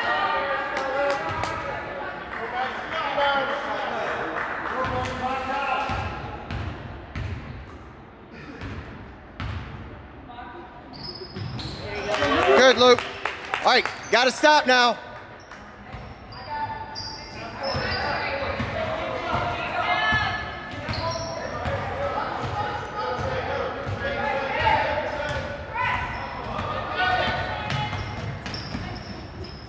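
Voices of young players and adults shout and call out across an echoing gym.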